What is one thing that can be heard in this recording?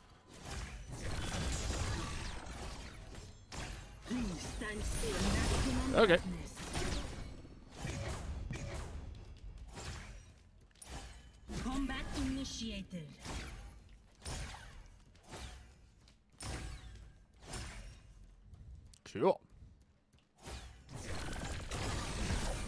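Weapons clash and magic bursts ring out.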